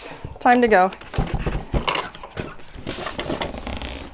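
A cardboard box scrapes and thumps as it is moved.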